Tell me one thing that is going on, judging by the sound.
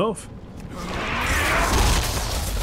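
Spell effects whoosh and crackle.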